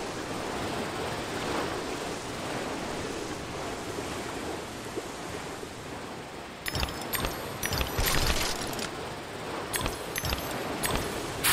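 A steady rushing whoosh accompanies a fast slide down a slope.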